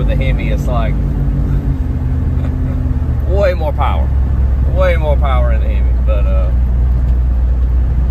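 A man laughs nearby.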